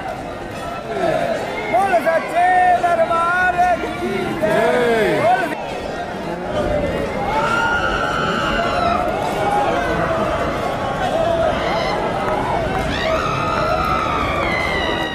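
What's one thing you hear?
People in a crowd sing and chant loudly together.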